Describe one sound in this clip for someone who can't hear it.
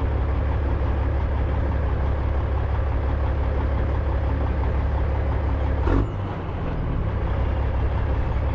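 Tyres crunch over a dirt track.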